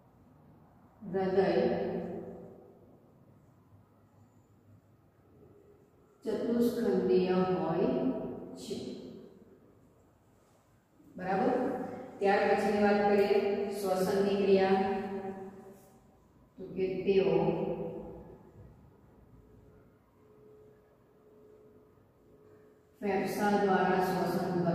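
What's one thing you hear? A young woman speaks calmly and clearly, pausing between phrases.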